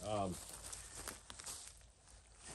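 Footsteps crunch on dry leaves close by.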